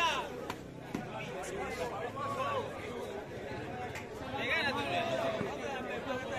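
A large outdoor crowd chatters and shouts loudly.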